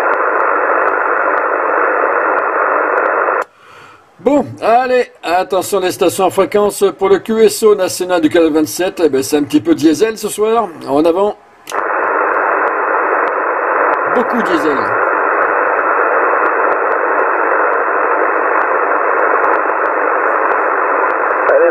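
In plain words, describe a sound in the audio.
Radio static hisses steadily from a loudspeaker, cutting out for a few seconds partway through.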